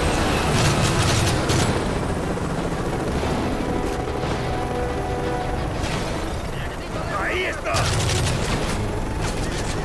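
Rifle shots fire in rapid bursts.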